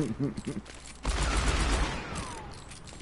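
A revolver fires a loud shot.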